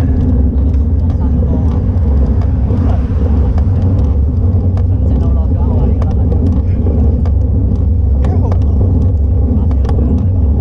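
Bicycle tyres hum on the road.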